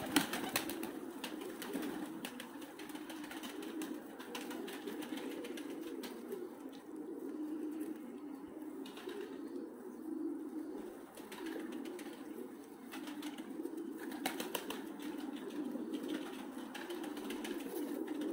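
Pigeons peck at grain on a hard floor.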